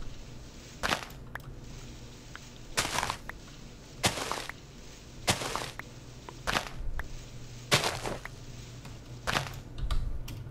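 Blocks of dirt crunch as they are dug out, one after another.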